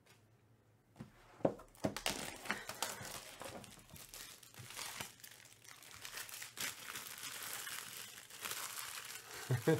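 Plastic wrap crinkles and rustles as it is torn off a box.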